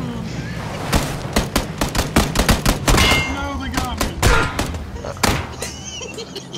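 Gunshots crack in quick bursts close by.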